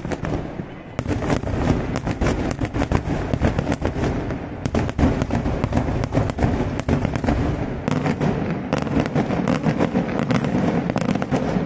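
Fireworks crackle and pop in rapid bursts far off.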